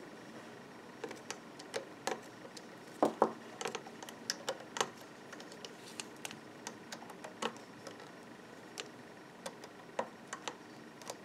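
Plastic pegs and a hook click and tap as hands work a small loom.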